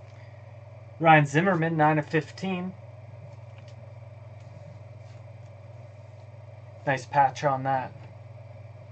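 A man speaks briefly with animation, close to a microphone.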